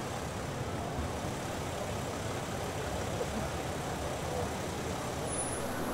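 A crowd of men and women murmurs and talks outdoors in a busy street.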